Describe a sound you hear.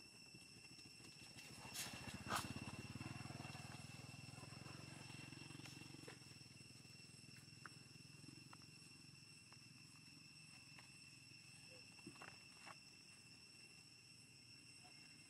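Dry leaves crackle softly as monkeys shift about on the ground.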